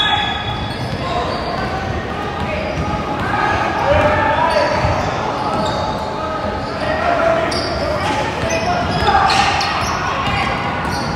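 Young boys shout and call out to each other during play.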